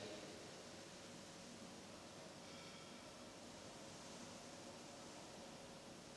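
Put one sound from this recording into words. A man sniffs wine from a glass.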